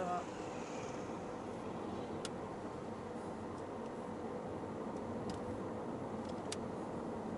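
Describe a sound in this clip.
Tyres roll steadily over the road.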